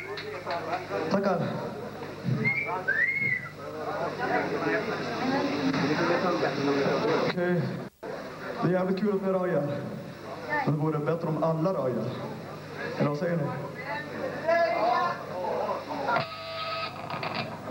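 A group of men and women sing and chant loudly.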